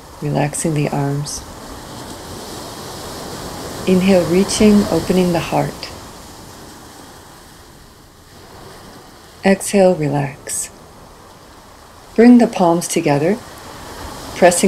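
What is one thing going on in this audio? Ocean waves wash steadily onto a beach.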